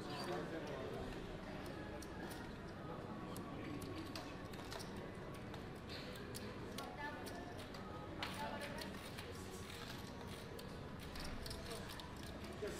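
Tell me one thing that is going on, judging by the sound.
Casino chips clack and click as they are stacked and moved.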